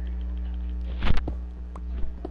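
A block of stone breaks with a crunch.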